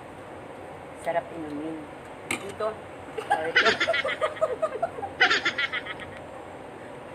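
A woman talks and laughs close by.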